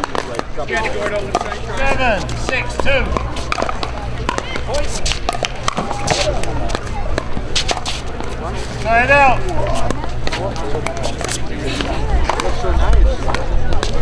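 Pickleball paddles pop against a plastic ball outdoors.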